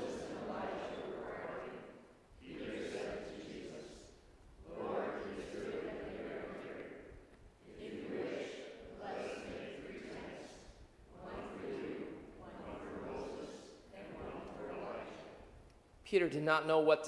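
A congregation recites together in unison in a large echoing hall.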